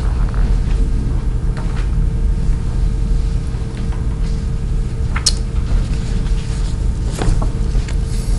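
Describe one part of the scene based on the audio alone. Papers rustle and tap on a table.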